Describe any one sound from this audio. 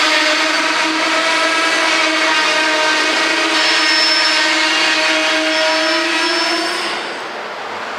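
Freight train wheels squeal shrilly on the rails.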